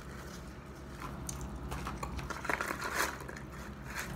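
A paper wrapper crinkles and rustles in hands.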